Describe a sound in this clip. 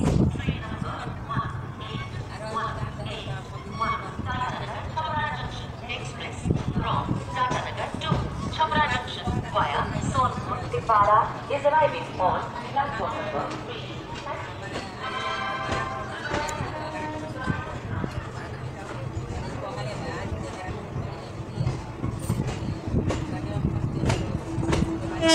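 A crowd of people chatters on a station platform nearby.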